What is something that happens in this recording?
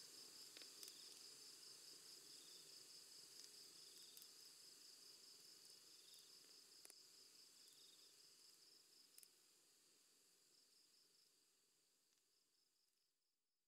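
A campfire crackles and pops, slowly fading away.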